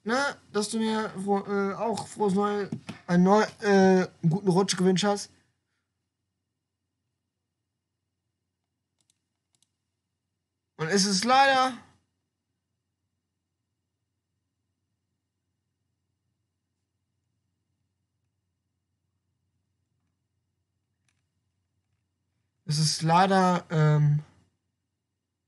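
A young man talks close to a microphone in bursts, with pauses of silence between them.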